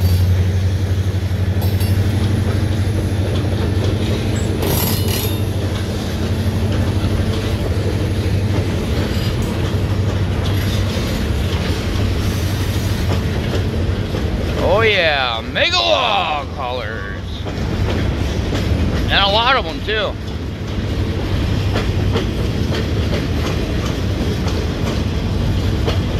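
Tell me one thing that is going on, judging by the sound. A freight train rumbles and clatters past close by.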